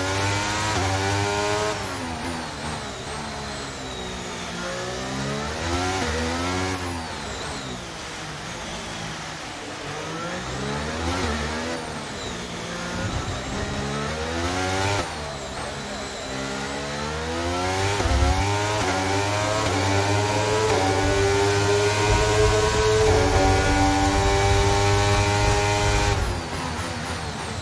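A racing car engine screams, its pitch climbing and dropping sharply as it accelerates and brakes.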